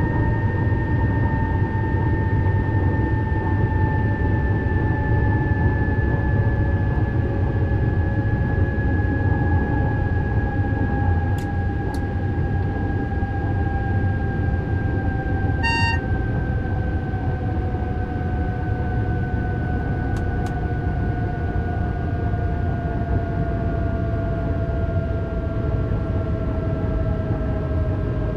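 An electric train motor whines steadily, its pitch slowly falling as the train slows.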